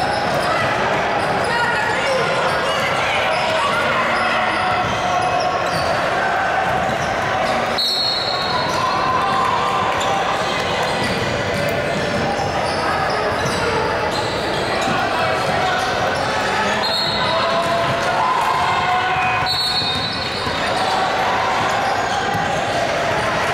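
Voices of players and spectators echo loudly through a large gym.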